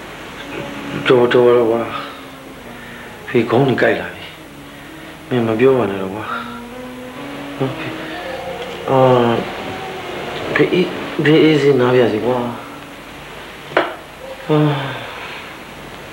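A middle-aged man speaks close by in a strained, pained voice.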